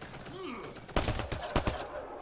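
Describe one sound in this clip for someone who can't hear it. Gunfire bursts out in rapid shots.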